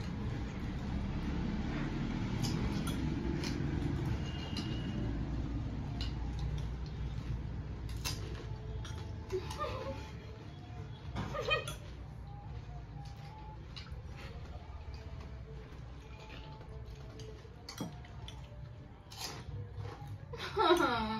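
Spoons clink against plates and bowls.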